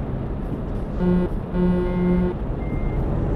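A truck horn sounds twice in short blasts.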